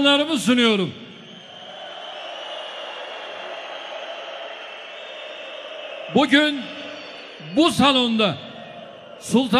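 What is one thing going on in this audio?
A large crowd cheers and roars.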